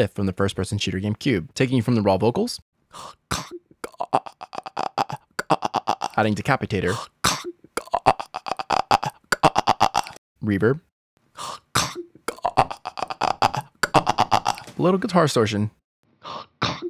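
A man growls and grunts gutturally into a close microphone.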